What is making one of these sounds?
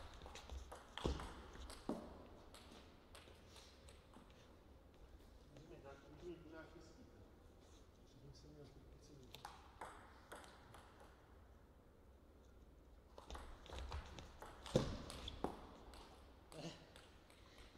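A table tennis ball clicks back and forth off paddles and the table in an echoing room.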